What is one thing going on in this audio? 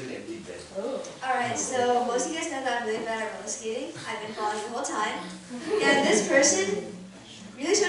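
A teenage girl speaks through a microphone into a room.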